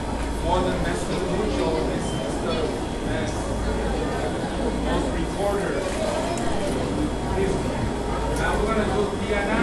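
Children play violins in a large room.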